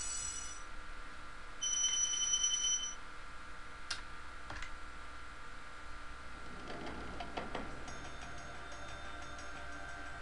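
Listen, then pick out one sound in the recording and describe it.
Light game music plays steadily.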